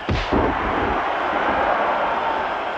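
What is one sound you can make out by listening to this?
Heavy bodies thud onto a wrestling ring mat.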